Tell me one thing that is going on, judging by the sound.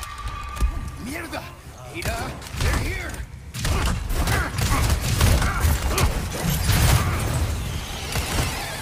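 Men grunt and snarl while attacking.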